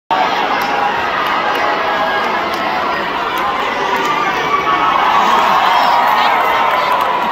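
A large crowd cheers and shouts loudly in a big echoing arena.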